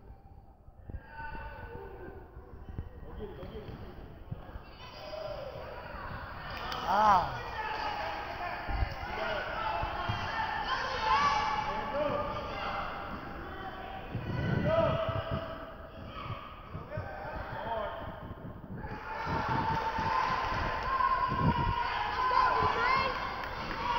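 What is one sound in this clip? A crowd of children shouts and cheers in a large echoing gym.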